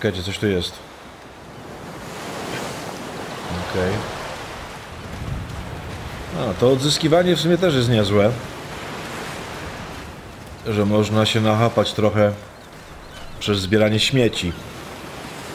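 A man talks casually, close to a microphone.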